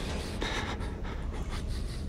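A young woman gasps in surprise.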